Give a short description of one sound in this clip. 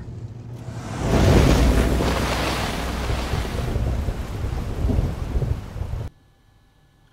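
A car engine roars as a car drives away.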